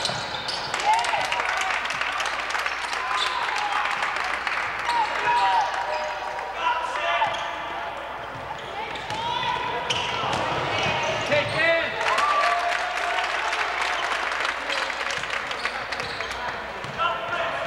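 Sneakers squeak sharply on a wooden court.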